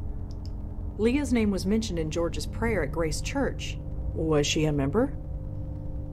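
A woman speaks calmly in a clear, close voice.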